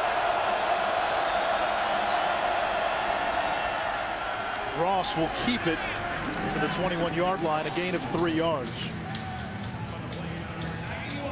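A large crowd cheers and roars in a big stadium.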